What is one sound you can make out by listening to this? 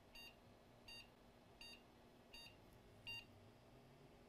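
An electronic meter beeps in short, evenly spaced chirps.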